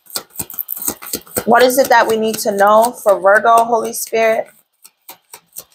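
Playing cards flick and tap as hands shuffle them.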